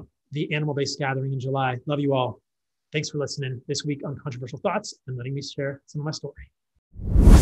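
A man speaks with animation close to a microphone.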